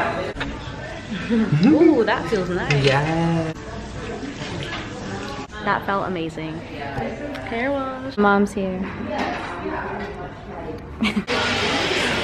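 A young woman talks cheerfully close by.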